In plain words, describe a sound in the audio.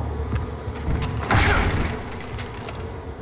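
An explosion bursts with a roar and scattered debris.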